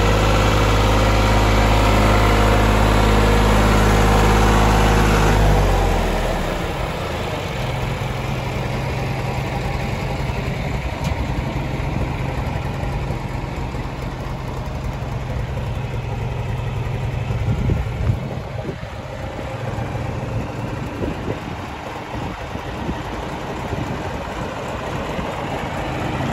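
A diesel engine idles loudly and steadily, then drops to a lower idle.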